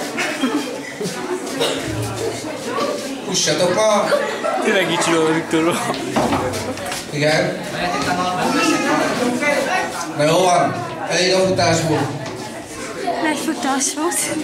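Feet shuffle and stamp on a hard floor as young people dance.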